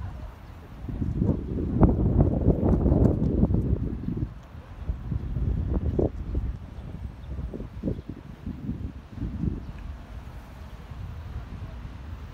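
A flock of pigeons flaps its wings as it flies overhead.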